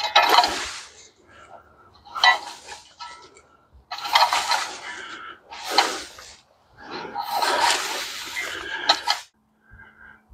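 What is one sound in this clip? A hand saw cuts through wood in quick strokes.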